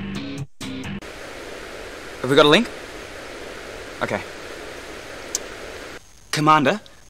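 Static hisses from a radio transmission.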